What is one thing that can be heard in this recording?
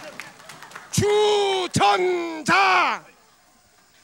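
An older man shouts excitedly into a microphone.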